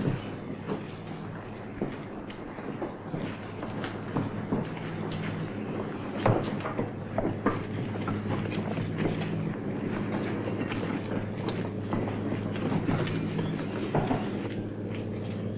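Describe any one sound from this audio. A crowd of men murmurs and chatters.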